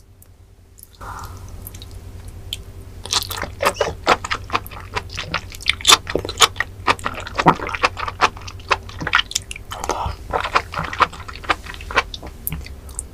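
A young woman chews crunchy food with wet, sticky sounds close to a microphone.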